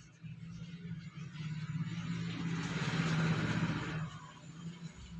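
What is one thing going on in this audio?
A marker pen scratches across paper.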